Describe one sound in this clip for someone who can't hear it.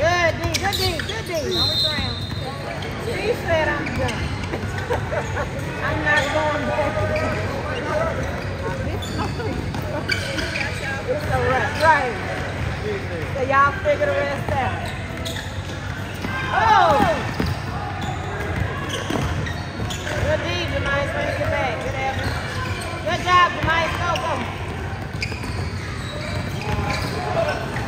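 A crowd of young people talks and calls out across the echoing gym.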